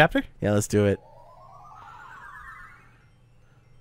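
A rising electronic whoosh sweeps upward.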